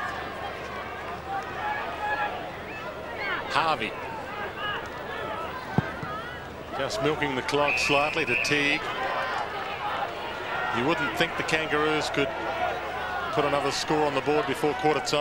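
A large crowd cheers and murmurs outdoors.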